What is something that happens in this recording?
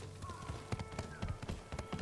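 Hooves clatter on wooden planks.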